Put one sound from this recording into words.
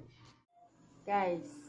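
A young woman speaks brightly and close by.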